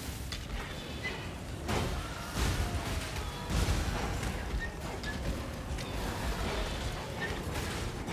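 Game spells crackle and boom in quick bursts.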